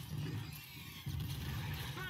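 An explosion booms and flames roar.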